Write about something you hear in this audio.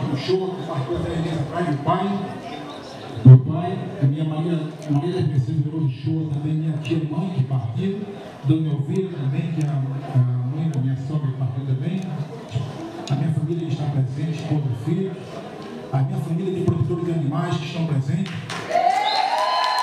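A middle-aged man speaks with animation through a microphone and loudspeaker in a large echoing hall.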